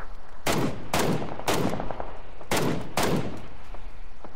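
A rifle fires several loud shots.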